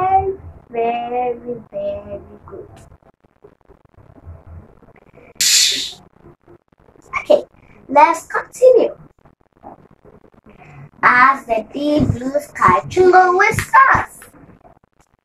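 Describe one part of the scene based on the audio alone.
A young girl reads aloud clearly, close by.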